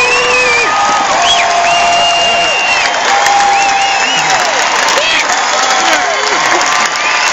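A crowd cheers and shouts close by.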